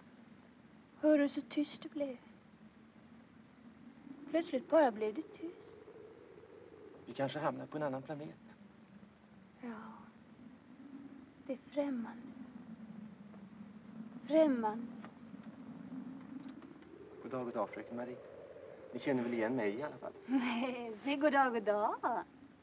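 A young woman speaks softly and nervously close by.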